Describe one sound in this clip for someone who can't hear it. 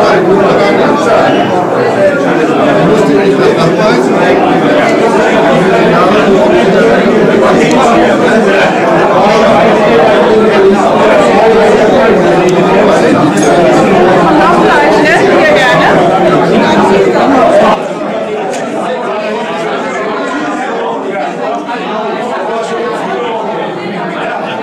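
A crowd of adults chatters loudly throughout a room.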